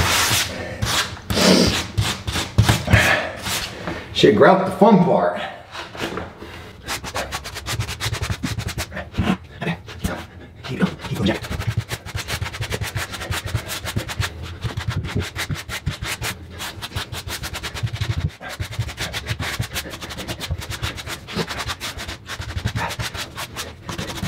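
A trowel scrapes and spreads wet adhesive across a floor.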